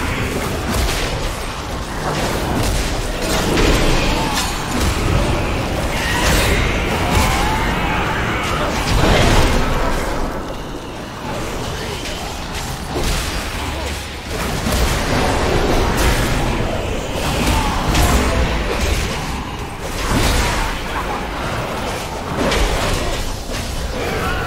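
A man talks into a headset microphone, close and with animation.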